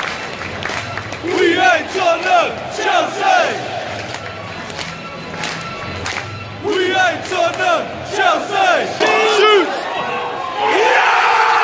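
A large crowd sings and chants loudly in a stadium.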